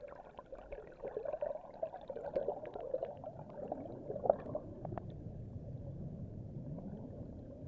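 Water swirls in a muffled underwater rush.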